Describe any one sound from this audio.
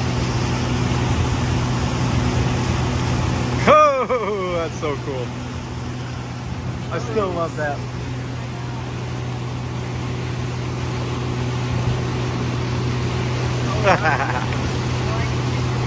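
An outboard motor drones steadily.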